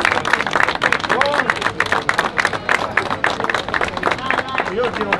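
A crowd claps and applauds outdoors.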